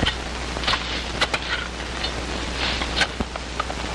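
Pick axes strike the earth in heavy blows.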